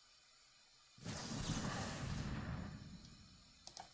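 A magical whoosh and shimmer sweeps through as a spell is cast.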